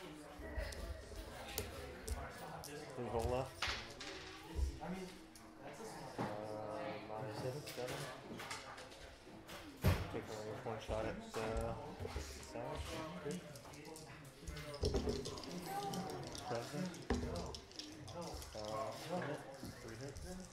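Plastic game pieces click and tap on a table.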